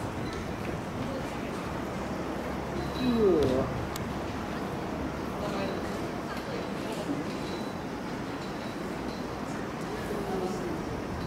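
A crowd murmurs and calls out at a distance outdoors.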